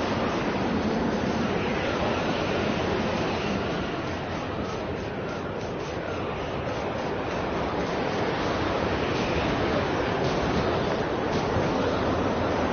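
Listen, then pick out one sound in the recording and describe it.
Wind roars steadily through a sandstorm.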